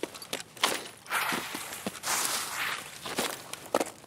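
Leaves and grass rustle as someone pushes through bushes.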